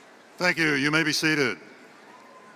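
An elderly man speaks calmly through a microphone and loudspeakers in a large echoing hall.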